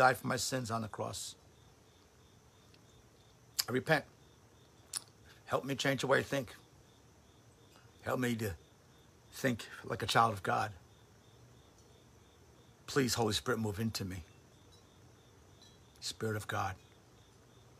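An older man speaks calmly and close to the microphone, with long pauses.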